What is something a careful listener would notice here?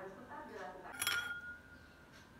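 A metal spoon clinks against a bowl.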